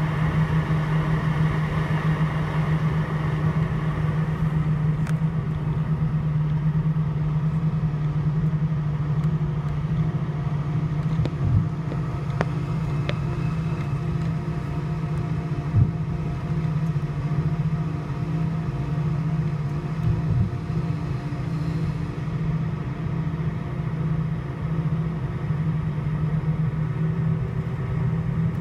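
Jet engines hum and whine steadily, heard from inside an airliner cabin.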